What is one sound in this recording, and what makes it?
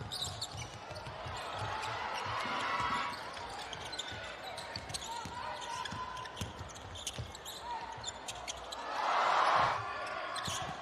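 A crowd cheers in a large echoing hall.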